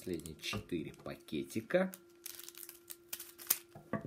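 Scissors snip open a foil packet.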